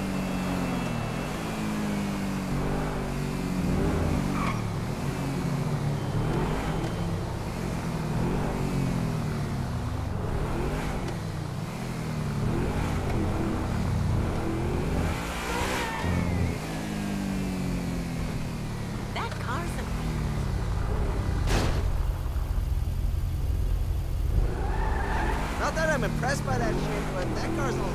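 A sports car engine revs up and down as the car speeds along.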